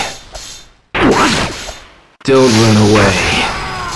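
A crackling electric blast bursts and hisses.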